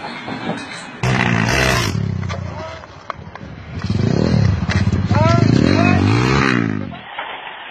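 A motorbike engine revs loudly.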